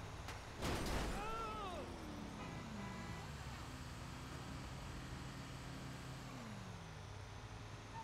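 A truck engine revs and its pitch falls as the gears change.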